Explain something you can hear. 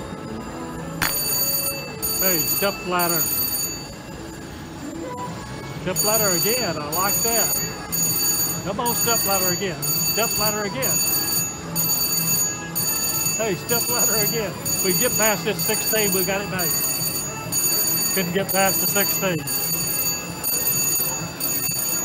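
A slot machine plays bright electronic jingles and chimes.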